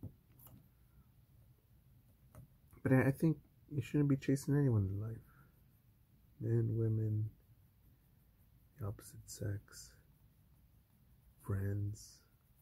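A coloured pencil scratches softly on paper.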